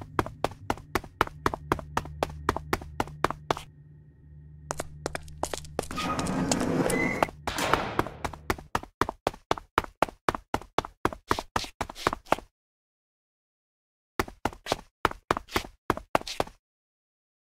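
Footsteps tap steadily on a hard floor in a large echoing space.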